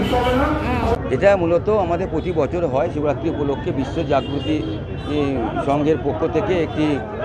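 A middle-aged man speaks up close with animation.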